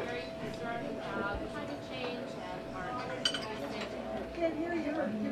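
Cutlery and dishes clink on plates.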